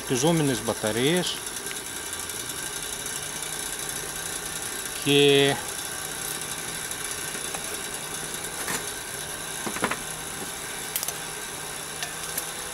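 A wood stove's fire roars steadily.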